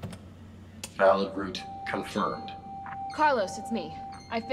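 An electronic chime sounds as lights switch on.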